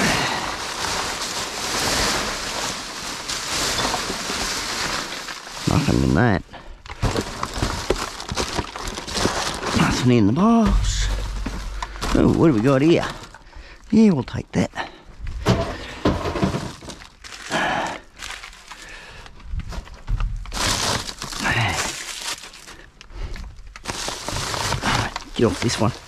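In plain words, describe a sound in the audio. Plastic bin bags rustle and crinkle.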